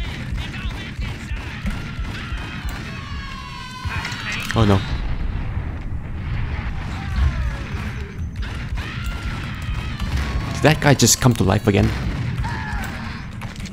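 Pistol shots ring out with sharp, echoing bangs.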